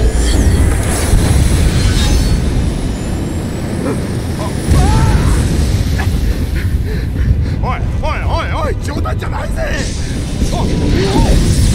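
A large engine roars and rumbles deeply.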